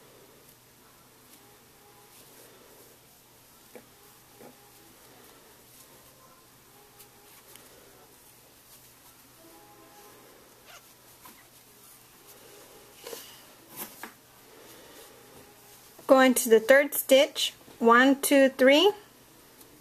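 A crochet hook softly rubs and clicks against yarn.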